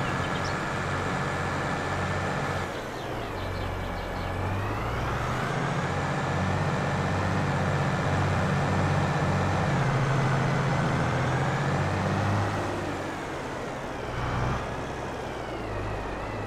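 A tractor engine rumbles steadily, rising and falling in pitch.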